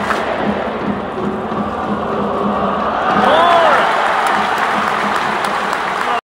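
A large crowd murmurs and cheers steadily, echoing through a big hall.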